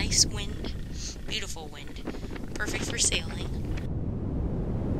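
Wind gusts loudly outdoors over open water.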